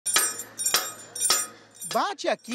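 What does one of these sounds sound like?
A hammer strikes metal with sharp, ringing blows.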